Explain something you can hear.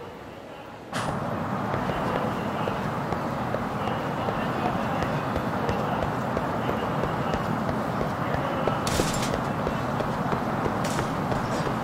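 Footsteps walk briskly on pavement.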